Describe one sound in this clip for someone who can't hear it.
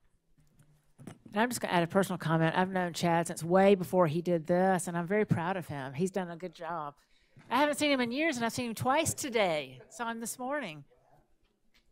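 A woman speaks calmly through a microphone over loudspeakers in an echoing room.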